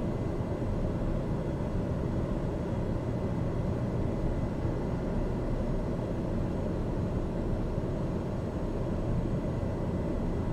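A light aircraft's engine drones steadily in flight, heard from inside the cockpit.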